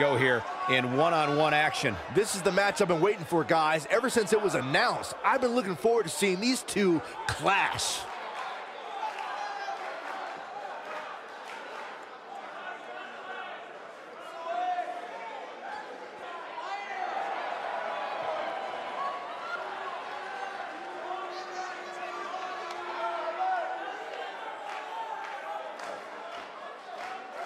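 A large crowd cheers and shouts in a big echoing arena.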